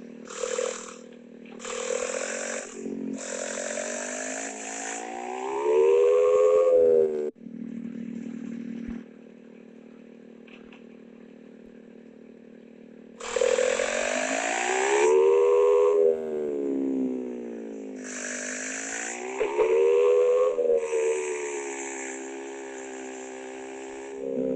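A motorbike engine revs up and down, rising and falling in pitch.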